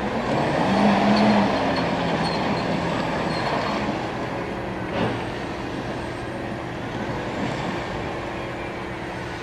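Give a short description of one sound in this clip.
Tank tracks clank and squeal on the road.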